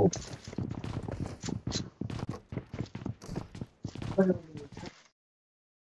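Footsteps thump quickly up wooden stairs.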